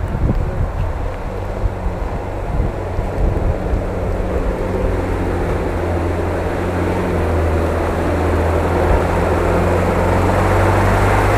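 A vehicle engine grows louder as it drives closer through mud.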